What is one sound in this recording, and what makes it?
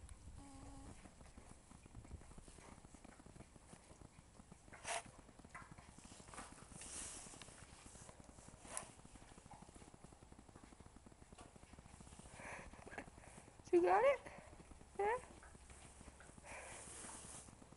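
A horse sniffs and snuffles close by.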